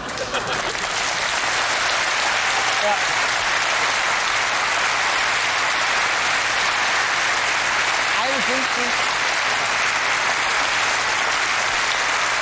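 A large studio audience applauds steadily.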